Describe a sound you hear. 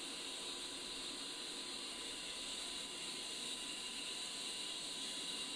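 A jet engine hums and whines steadily.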